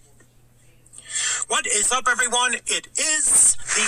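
A man talks with animation, heard through a small loudspeaker.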